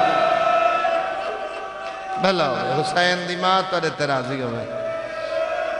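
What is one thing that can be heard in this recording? A man recites in a loud, chanting voice through a microphone and loudspeakers, with a strong echo.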